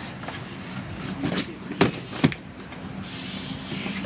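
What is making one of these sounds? A cardboard box is set down on a hard floor with a thump.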